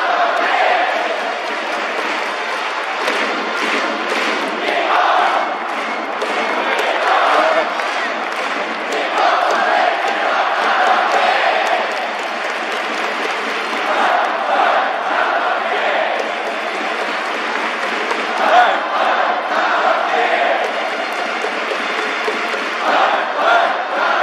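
Fans clap and bang noisemakers in a steady rhythm.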